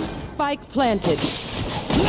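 A gun fires rapidly at close range.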